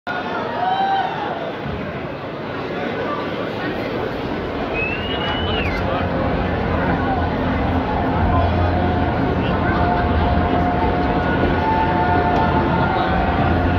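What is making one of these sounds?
Loud live music plays through speakers in a large echoing hall.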